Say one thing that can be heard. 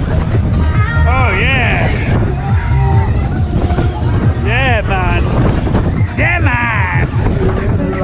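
Riders on a fairground ride scream and shriek.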